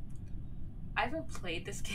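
A young woman speaks briefly close to a microphone.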